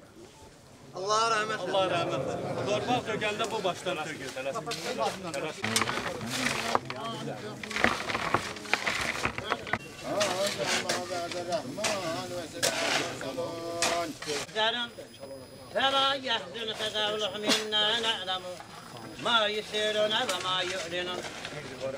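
A man chants a prayer loudly through a loudspeaker.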